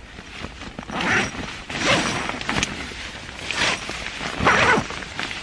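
Nylon fabric rustles and crinkles close by.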